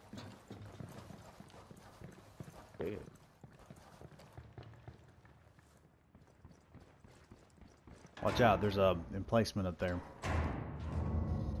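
Footsteps crunch on a hard floor in an echoing tunnel.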